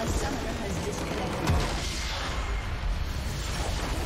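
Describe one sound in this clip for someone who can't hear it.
A large structure explodes with a deep rumbling blast.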